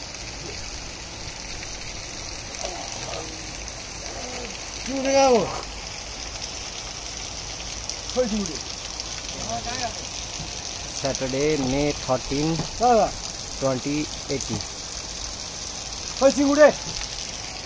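A river flows over rocks with a steady rush.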